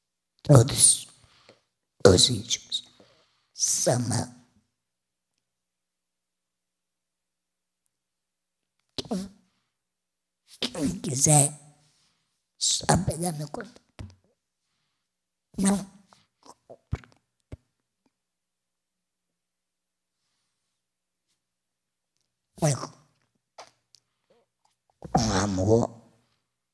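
A woman speaks into a microphone in short bursts, with long pauses between phrases.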